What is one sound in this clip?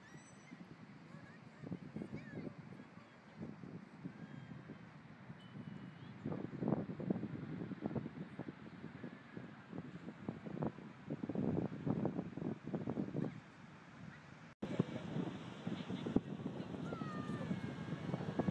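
Wind gusts across the microphone outdoors.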